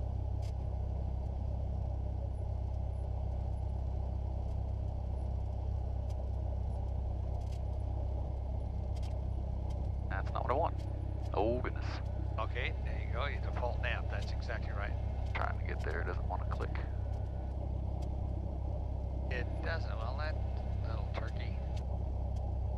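A small plane's propeller engine drones steadily from inside the cockpit.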